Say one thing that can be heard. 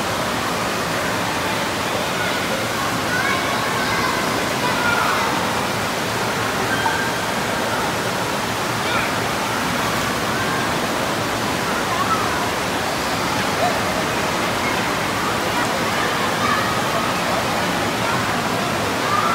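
Water rushes and splashes steadily in a large echoing hall.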